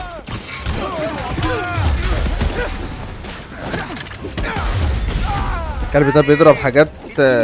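Heavy blows thud in a fistfight.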